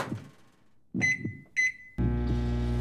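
A microwave beeps twice.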